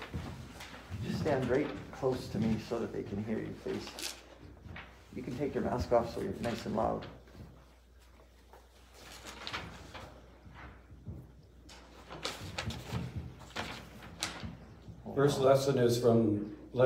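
A middle-aged man reads aloud through a microphone.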